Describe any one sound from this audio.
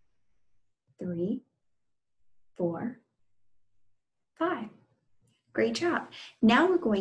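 A young woman speaks with animation in short bursts, close to the microphone.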